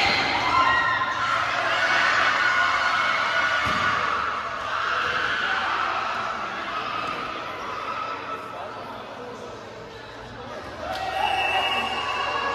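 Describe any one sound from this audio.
Sneakers squeak on a hard court floor.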